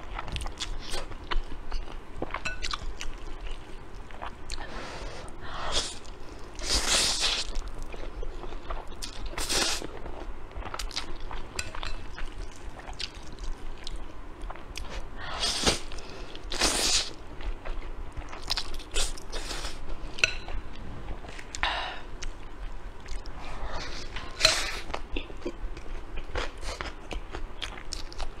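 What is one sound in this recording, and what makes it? A young woman chews food with wet, smacking sounds close to a microphone.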